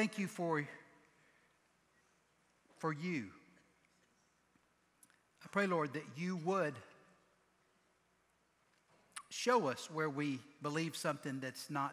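A middle-aged man speaks slowly and earnestly through a headset microphone, with pauses between phrases.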